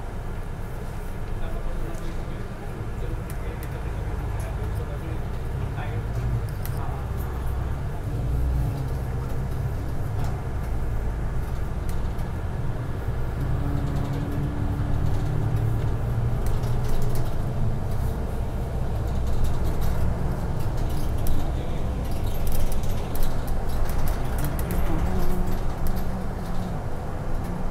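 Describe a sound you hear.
Loose fittings rattle inside the moving bus.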